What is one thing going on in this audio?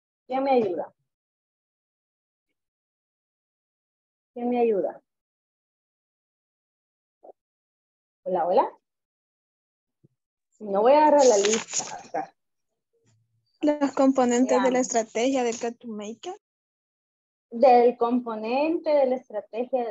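A woman speaks with animation over an online call, in short bursts with pauses.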